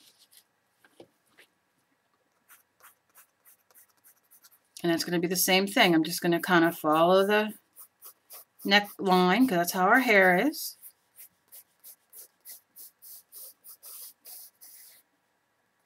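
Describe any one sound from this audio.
A pencil scratches quickly across paper in short strokes.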